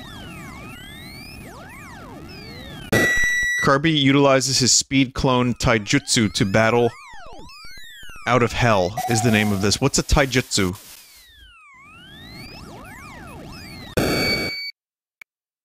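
Bleepy electronic game music plays.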